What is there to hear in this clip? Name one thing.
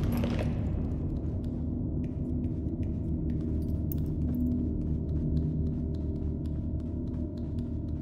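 Heavy footsteps thud and shuffle on a hard floor.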